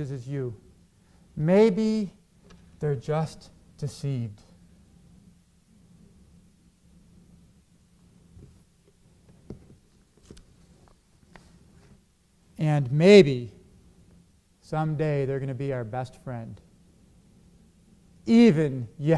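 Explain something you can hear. A middle-aged man speaks calmly through a microphone, with long pauses.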